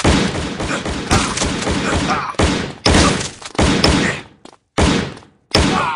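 A rifle fires short bursts of shots.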